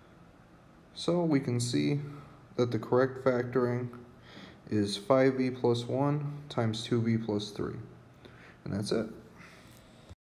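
A young man speaks calmly and clearly into a close microphone.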